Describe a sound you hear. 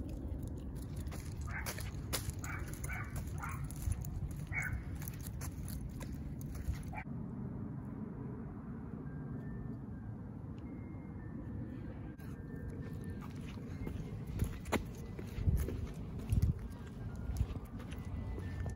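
A dog's claws click on a concrete path.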